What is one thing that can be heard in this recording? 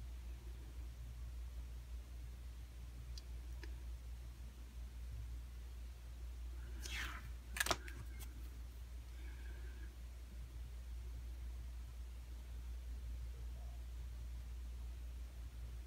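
A pen rubs softly across paper.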